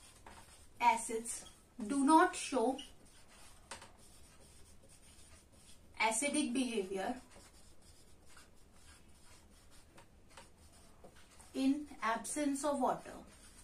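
A young woman speaks calmly in short phrases, close by.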